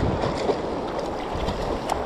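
A fish thrashes and splashes at the surface.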